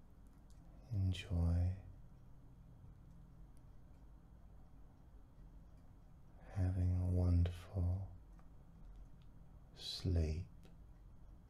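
A man speaks slowly and calmly into a nearby microphone, in short phrases with long pauses.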